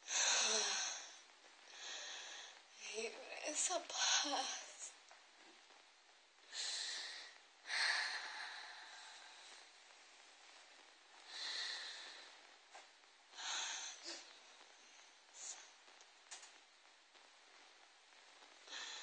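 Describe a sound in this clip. A young woman speaks close by, slowly and haltingly, with pauses.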